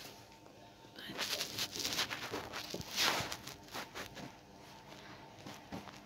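Cloth rustles and crinkles as it is folded and handled.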